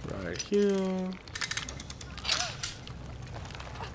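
A metal bear trap clanks and creaks as it is set.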